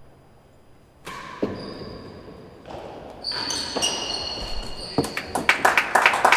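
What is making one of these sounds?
A racket strikes a ball with a sharp crack in a large echoing hall.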